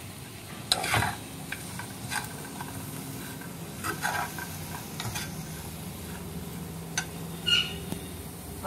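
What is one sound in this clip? A metal spatula scrapes and clatters against a frying pan.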